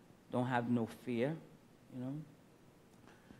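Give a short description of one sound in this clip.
A man speaks briefly and calmly into a microphone.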